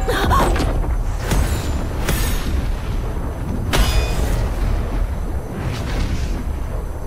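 Magical energy whooshes and chimes in sudden bursts.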